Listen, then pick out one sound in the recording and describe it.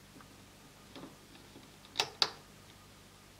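A rubber band snaps softly against plastic pegs.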